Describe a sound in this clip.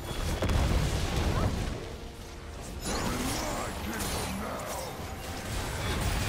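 Fantasy battle sound effects whoosh and crackle in a video game.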